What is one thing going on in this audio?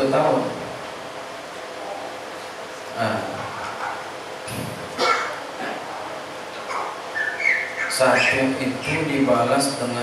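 A middle-aged man speaks calmly into a microphone, heard through a loudspeaker in an echoing room.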